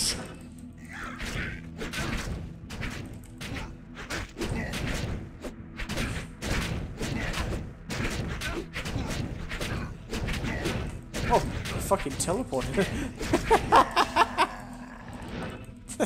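Spells and blows crackle and thud in a game battle.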